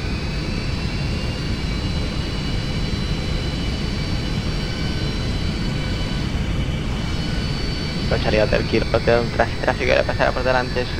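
Jet engines hum steadily with a low rumble and a thin whine.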